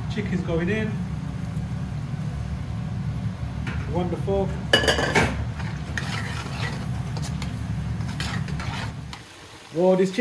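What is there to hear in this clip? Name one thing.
Food sizzles and fries loudly in a hot pan.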